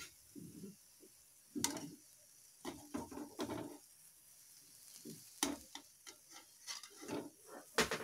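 A metal strainer clinks against a pan.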